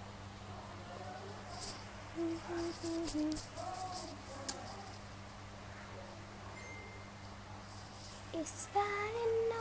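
A young woman sings softly, close by.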